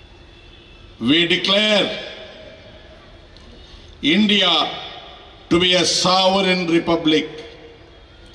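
An elderly man speaks forcefully into a microphone, heard through loudspeakers, in short bursts with pauses.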